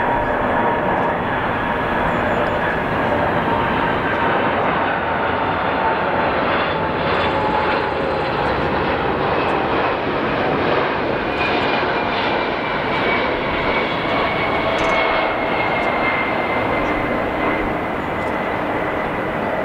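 A jet airliner's engines roar and whine steadily overhead as it comes in low.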